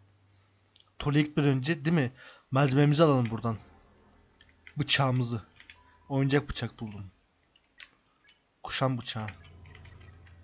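A young man talks animatedly, close to a microphone.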